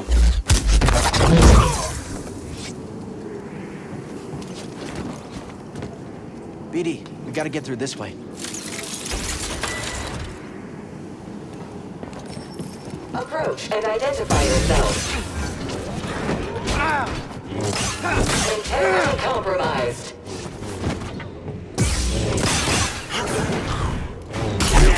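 Lightsabers hum and clash with sharp crackles.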